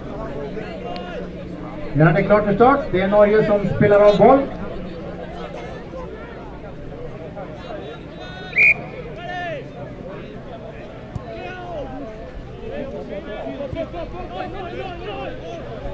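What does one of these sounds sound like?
Teenage players shout to one another outdoors on an open field.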